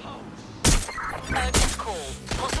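Gunshots fire in quick succession.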